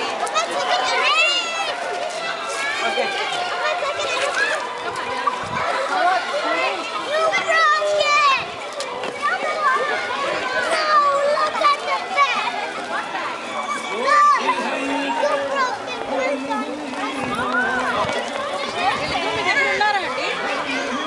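Children shriek with excitement.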